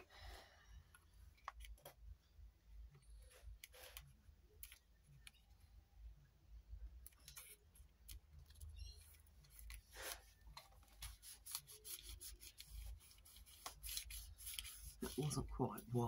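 Paper rustles and crinkles as hands fold and press it.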